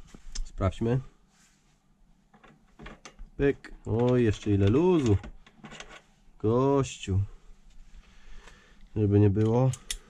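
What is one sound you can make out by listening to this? Metal parts clink softly as a socket is handled.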